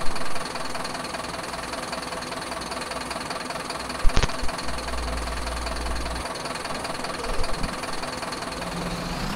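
A diesel coach engine drones as the coach drives along a dirt road.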